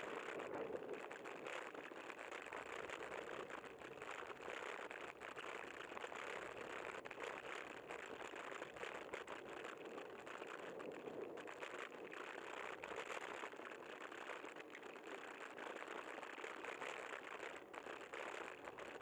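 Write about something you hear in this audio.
A vehicle drives steadily along a road.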